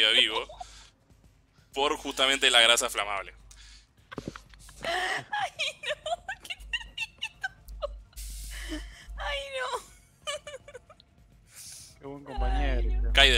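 A woman laughs loudly over an online call.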